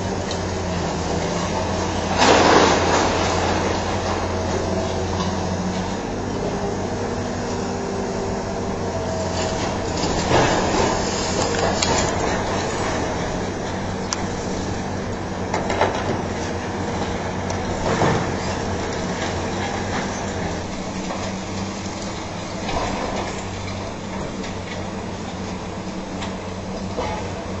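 A hydraulic excavator engine rumbles.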